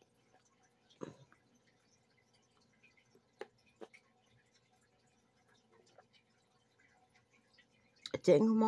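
A woman swallows water in soft gulps.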